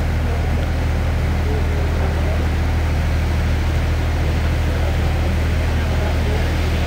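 A train rumbles slowly past, close by.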